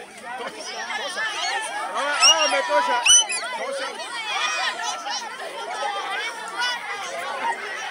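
A crowd of young children shouts and cheers excitedly close by.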